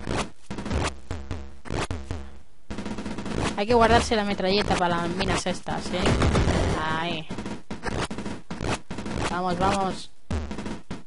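Retro video game gunshots pop repeatedly.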